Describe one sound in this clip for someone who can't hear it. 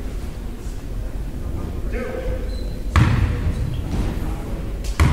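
Players shout to each other in a large echoing gym.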